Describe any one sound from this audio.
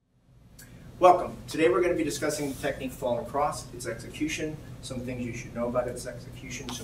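An older man speaks calmly and clearly, as if instructing, in a room with a slight echo.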